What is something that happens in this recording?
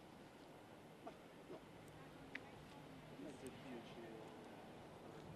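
Men talk quietly at a distance outdoors.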